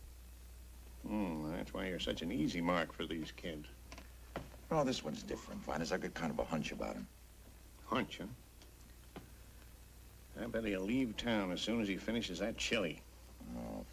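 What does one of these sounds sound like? A middle-aged man talks nearby.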